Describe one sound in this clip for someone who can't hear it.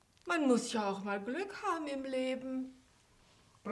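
An elderly woman speaks expressively nearby.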